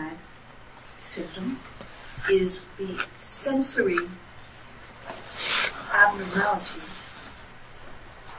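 A marker squeaks on paper.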